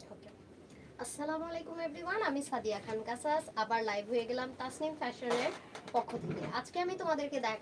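A young woman speaks with animation, close to a clip-on microphone.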